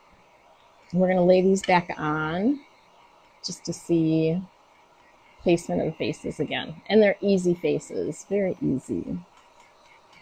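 A woman talks with animation close to a clip-on microphone.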